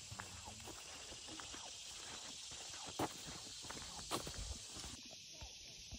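Footsteps crunch on a dirt forest path.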